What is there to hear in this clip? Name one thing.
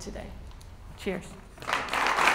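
A woman speaks a few words into a microphone.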